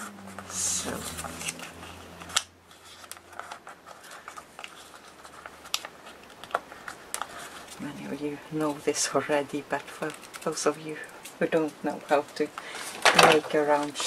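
Paper crinkles and rustles as hands fold it.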